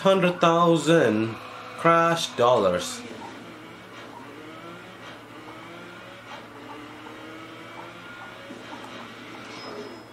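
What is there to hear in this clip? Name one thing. A racing car engine revs and roars as the car speeds up.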